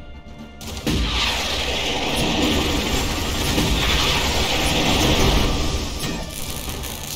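Guns fire rapidly in a noisy battle.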